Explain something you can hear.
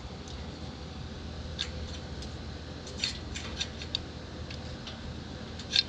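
A metal wrench clinks and rattles against a trailer fitting.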